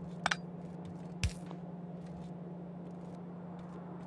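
A short click sounds.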